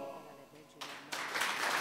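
A male choir sings a final chord that fades out.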